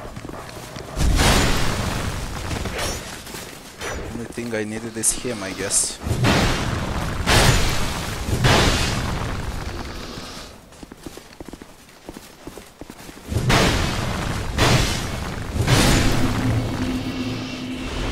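Swords clash and strike in a fight.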